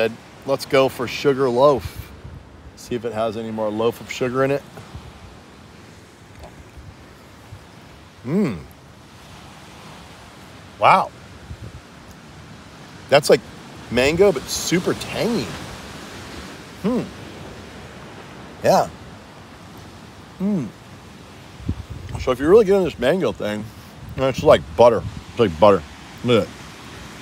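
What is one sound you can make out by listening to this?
A middle-aged man talks close by with animation.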